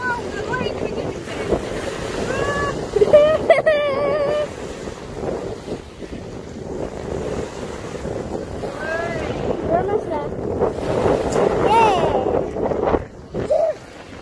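Waves splash against rocks in wind.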